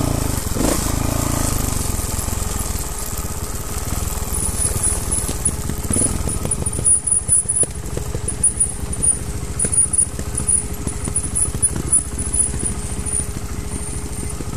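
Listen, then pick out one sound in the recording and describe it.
The frame and chain of a mountain bike rattle over bumps.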